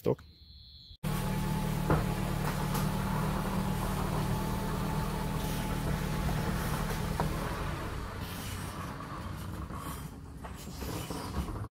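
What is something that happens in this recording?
A garage door motor hums steadily as the door rolls down.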